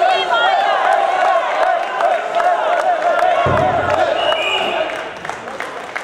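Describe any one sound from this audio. A large crowd cheers and whistles in an echoing hall.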